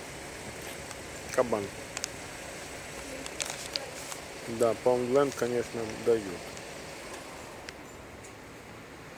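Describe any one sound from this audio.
A plastic wrapper crinkles in a hand close by.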